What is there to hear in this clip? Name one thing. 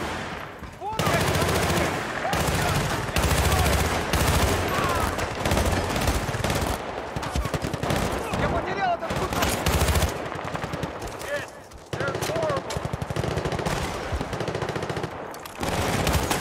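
Rapid automatic rifle fire rattles in bursts.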